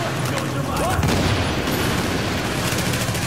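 An explosion booms and roars with fire.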